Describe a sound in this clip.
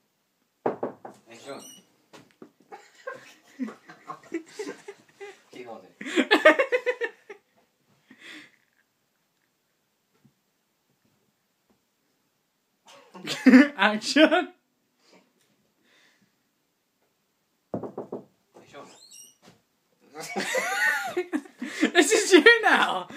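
A young man laughs and talks close by.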